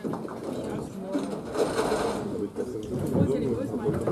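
Pins clatter as they are knocked down.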